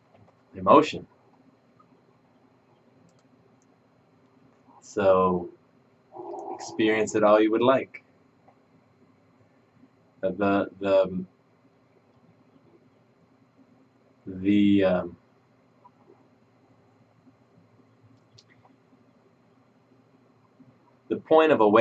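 A man speaks calmly and slowly into a nearby microphone, with long pauses.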